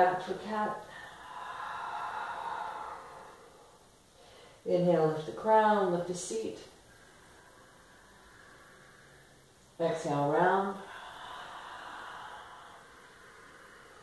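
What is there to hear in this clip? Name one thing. A woman breathes deeply in and out.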